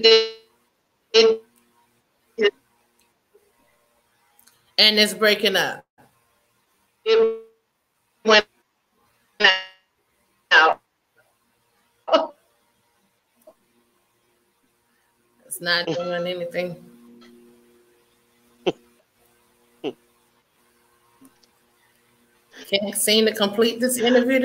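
A woman speaks animatedly over an online call, in short bursts.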